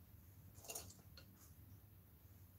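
Small brushes clatter as they are set down on a table.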